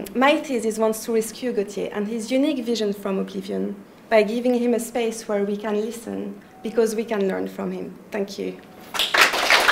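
A young woman speaks with animation through a clip-on microphone.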